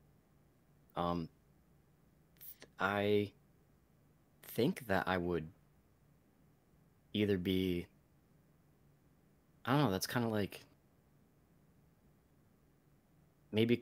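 A young man speaks in short bursts over an online call, with pauses between.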